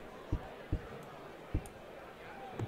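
Darts thud into a dartboard one after another.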